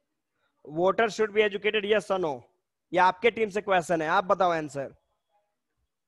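A man speaks with animation through a headset microphone, heard as if over an online call.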